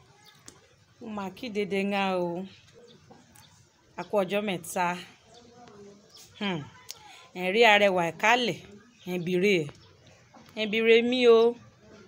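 A young woman speaks expressively and close to the microphone, with pauses between phrases.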